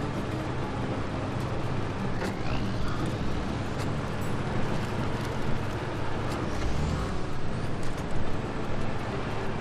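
A heavy truck engine roars and strains at low speed.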